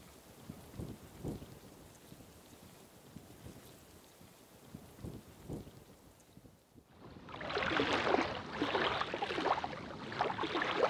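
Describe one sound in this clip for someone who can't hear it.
Shallow water laps and washes softly over sand, then swells louder.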